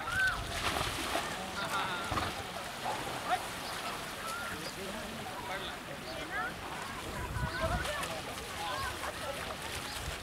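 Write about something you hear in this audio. Water splashes loudly as an elephant sprays itself in a river.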